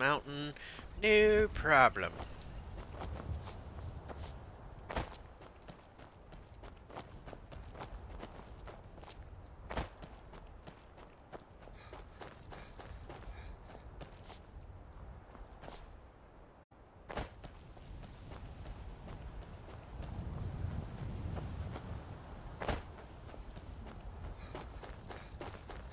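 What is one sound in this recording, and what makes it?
Footsteps crunch over grass and rock.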